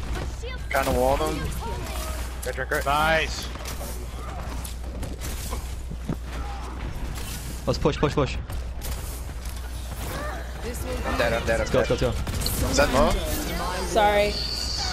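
Energy weapons fire with rapid buzzing zaps.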